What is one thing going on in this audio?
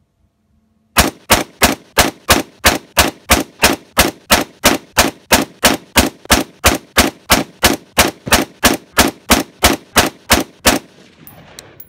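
A rifle fires a rapid string of loud, sharp shots outdoors.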